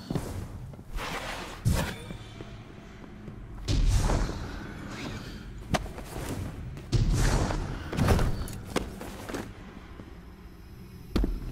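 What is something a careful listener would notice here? Heavy footsteps thud and clank on a metal floor.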